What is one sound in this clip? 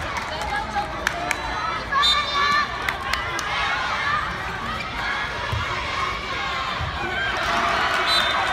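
A crowd of young players and onlookers shouts and cheers outdoors.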